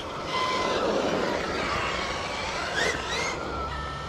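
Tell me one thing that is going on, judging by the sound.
A brushless electric RC truck whines as it accelerates across asphalt.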